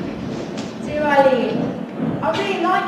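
A young woman speaks aloud in a large echoing hall.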